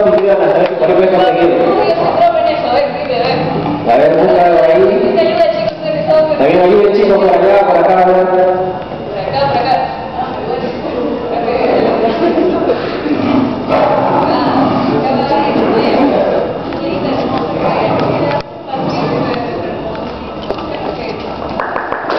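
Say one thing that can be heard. A young man talks through a microphone and loudspeakers in a large echoing hall.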